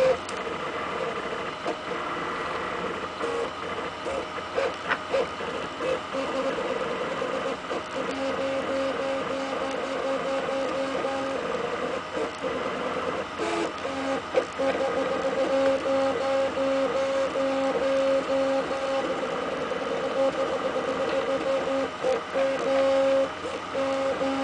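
Stepper motors of a 3D printer whine and buzz in changing pitches as the print head moves quickly back and forth.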